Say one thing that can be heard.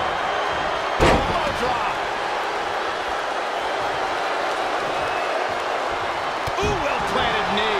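A body slams down hard onto a wrestling mat with a loud thud.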